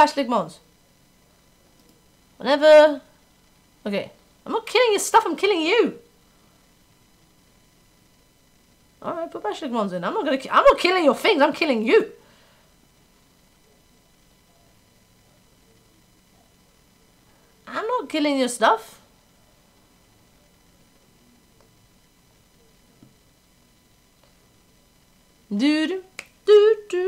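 A young woman talks into a microphone in short, lively bursts.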